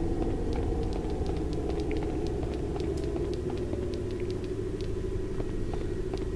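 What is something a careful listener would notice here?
Quick footsteps patter across a stone floor.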